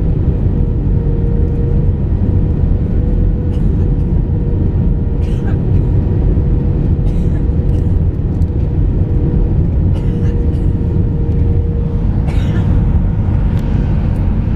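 Jet engines roar steadily with a deep, constant rumble inside an airliner cabin.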